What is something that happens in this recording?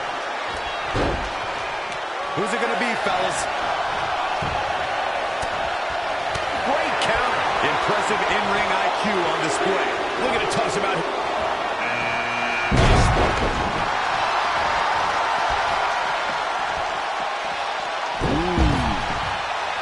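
Bodies slam onto a wrestling ring mat with heavy thuds.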